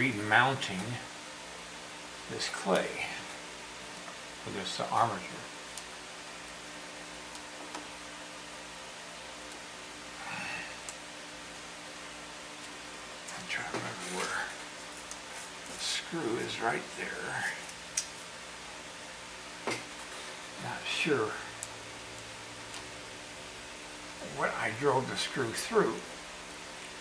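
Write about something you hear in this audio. An elderly man talks calmly close by, in short bursts.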